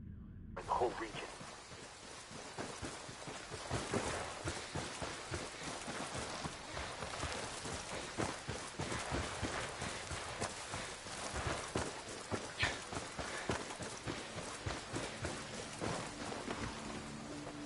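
Footsteps crunch through dry grass and brush.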